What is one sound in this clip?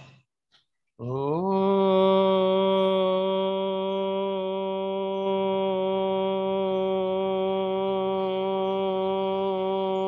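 An elderly man hums a long, steady note.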